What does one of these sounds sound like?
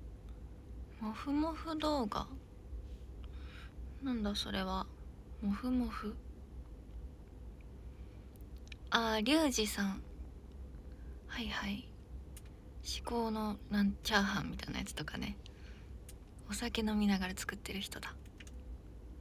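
A young woman speaks calmly and softly in short bursts, close to a microphone.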